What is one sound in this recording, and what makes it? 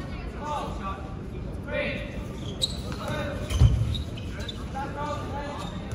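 Young people shout and call out with animation in a large echoing hall.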